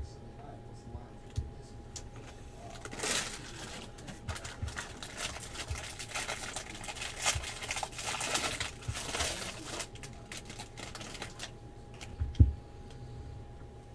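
Trading cards rustle and flick as they are sorted.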